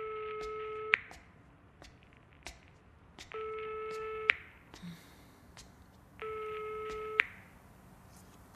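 Footsteps tap on concrete stairs.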